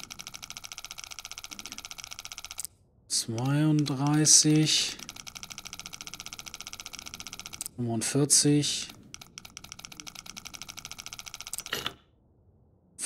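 A combination dial clicks rapidly as it turns.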